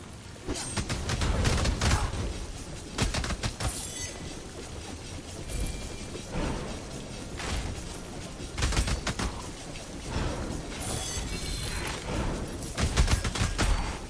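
Hits land with sharp impacts.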